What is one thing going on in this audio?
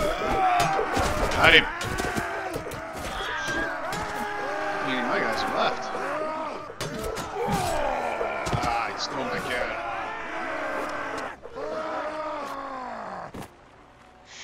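Weapons clash and clang in a battle.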